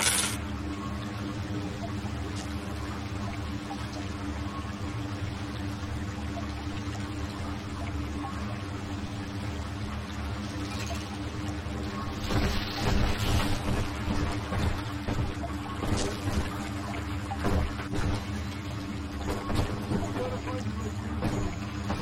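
Electricity crackles and buzzes steadily.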